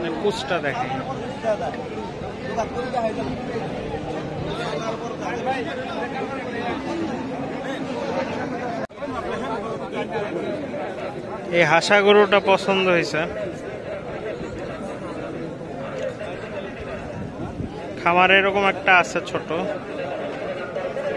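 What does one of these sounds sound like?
Men chatter in a busy outdoor crowd.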